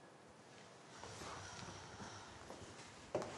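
A woman rises from a soft sofa with a rustle of clothing.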